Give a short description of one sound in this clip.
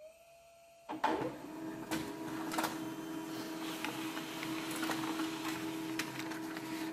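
A printer feeds and prints paper with a rhythmic mechanical rattle.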